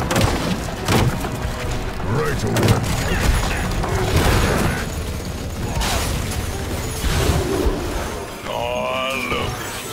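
Energy weapons blast and zap in a hectic battle.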